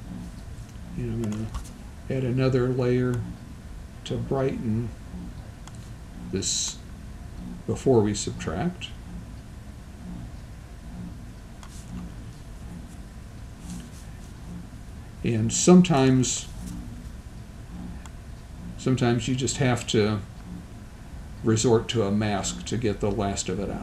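An older man speaks calmly into a microphone, in short bursts with pauses.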